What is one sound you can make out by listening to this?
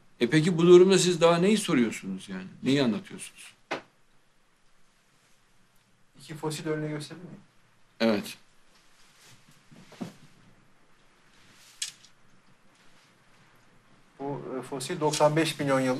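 An adult man speaks calmly into a microphone, with pauses.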